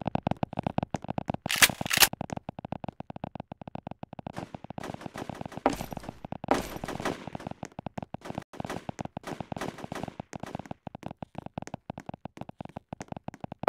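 Quick footsteps patter steadily on a hard surface.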